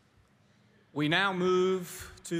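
A man speaks into a microphone, heard through loudspeakers in a large hall.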